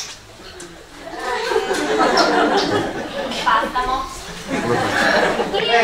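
A young woman speaks with animation in an echoing hall.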